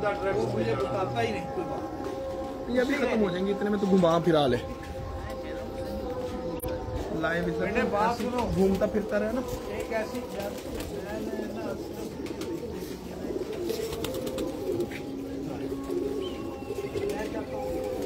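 Pigeons coo softly outdoors.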